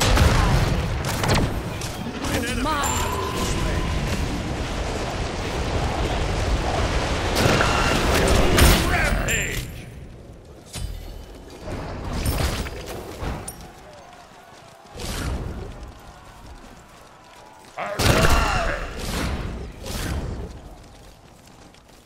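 Magical blasts and clashing weapons burst in a busy fight.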